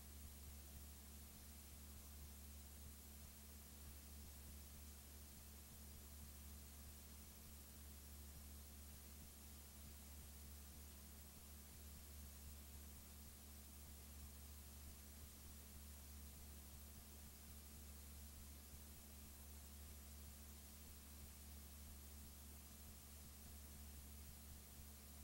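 Television static hisses steadily.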